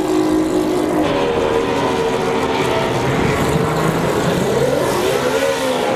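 A boat engine rumbles close by.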